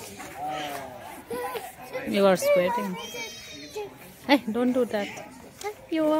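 A young girl speaks close by with animation.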